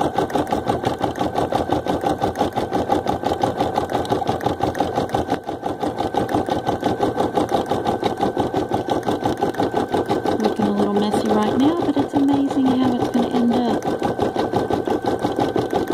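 An embroidery machine stitches with a fast, steady rattling hum.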